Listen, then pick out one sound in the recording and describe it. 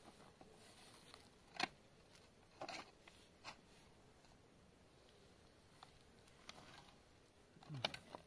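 A shovel scrapes and scoops dry sand.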